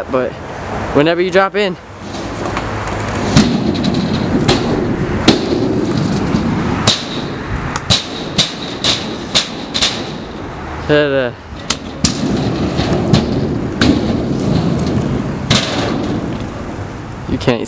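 Kick scooter wheels roll and rumble on a concrete ramp.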